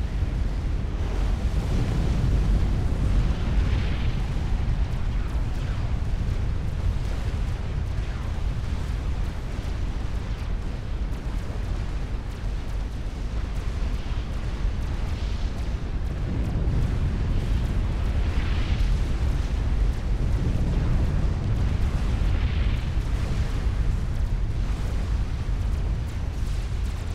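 Explosions and gunfire rumble steadily in a battle.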